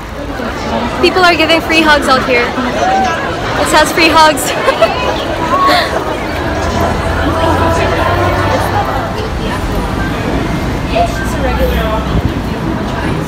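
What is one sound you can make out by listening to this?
A bustling crowd murmurs outdoors.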